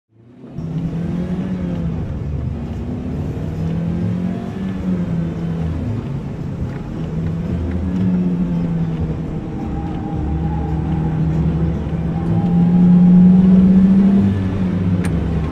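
A ride car rumbles along its track.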